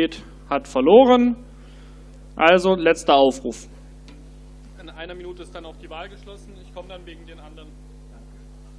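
A man speaks loudly through a loudspeaker in a large echoing hall.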